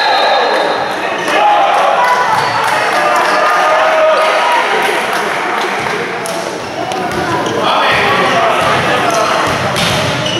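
A crowd of spectators cheers and chatters loudly in a large echoing hall.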